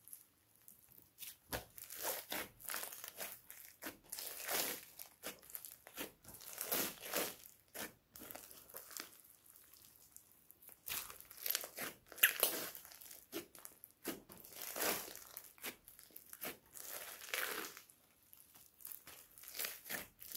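Hands squish and stretch sticky slime, with wet crackling and popping.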